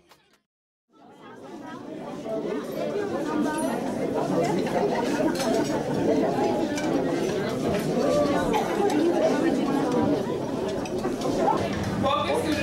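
A crowd of people chatter indoors.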